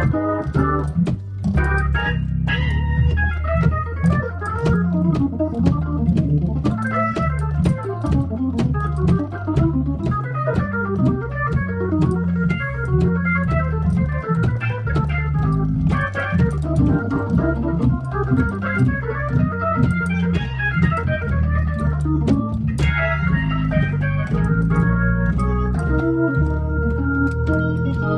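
An electric organ plays a lively tune with chords and a walking bass line.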